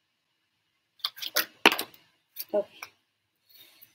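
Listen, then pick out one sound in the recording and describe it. Cards tap and rustle in a young woman's hands.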